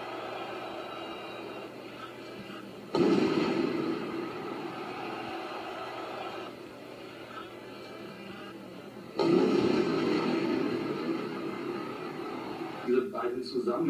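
A large stadium crowd roars loudly in surges.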